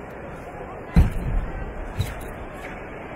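Bare feet thump on a mat as martial artists step and kick.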